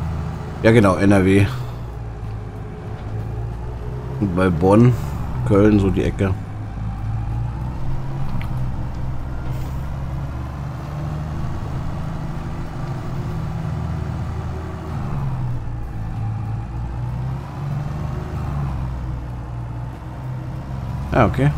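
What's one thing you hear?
A tractor engine drones steadily from inside the cab.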